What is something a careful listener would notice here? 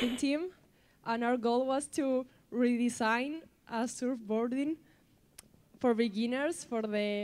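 A young woman speaks calmly into a microphone over loudspeakers.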